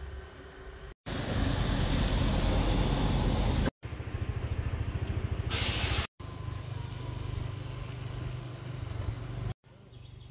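City traffic hums nearby.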